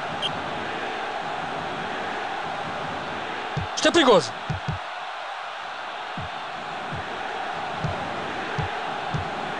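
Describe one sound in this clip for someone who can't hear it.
A crowd roars steadily throughout.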